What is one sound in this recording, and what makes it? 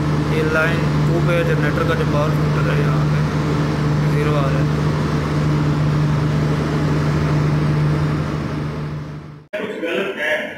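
Electrical equipment hums steadily.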